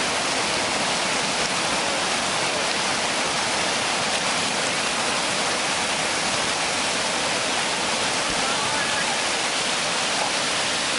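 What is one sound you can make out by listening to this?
Whitewater rushes and roars loudly over rapids.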